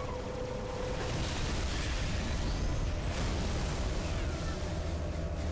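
Energy blasts burst with loud crackling roars.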